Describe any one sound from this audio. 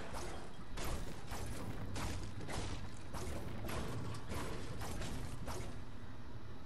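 A pickaxe strikes a wooden ceiling again and again in quick blows.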